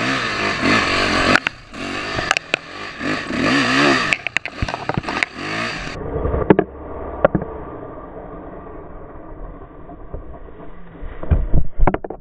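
A motorbike engine runs and revs up close.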